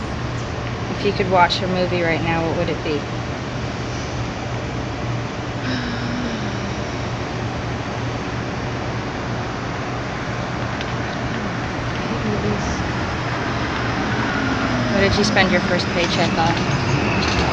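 A young woman speaks calmly close by.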